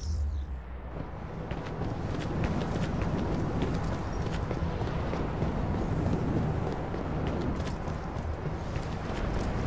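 Footsteps crunch quickly over dry ground and rocks.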